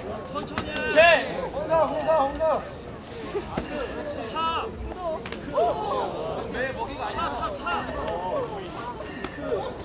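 A large outdoor crowd chatters and calls out with animation.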